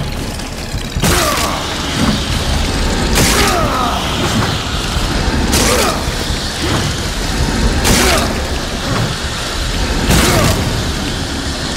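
A heavy blade whooshes and slashes through creatures again and again.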